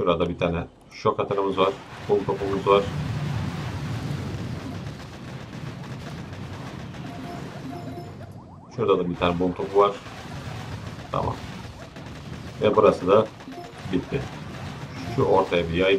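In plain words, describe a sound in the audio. Explosions and gunfire rumble in a battle.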